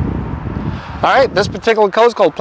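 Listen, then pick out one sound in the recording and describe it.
A man speaks close to the microphone.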